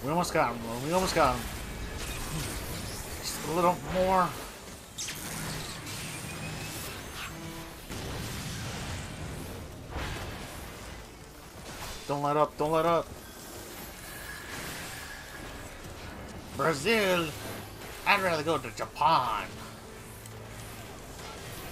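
Battle sound effects whoosh and crash steadily.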